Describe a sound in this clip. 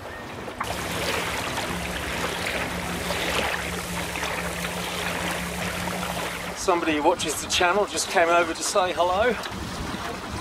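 Water splashes and rushes against the hull of a moving boat.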